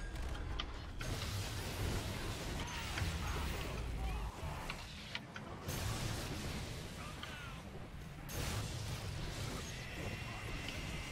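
A lightning gun crackles and hisses in bursts.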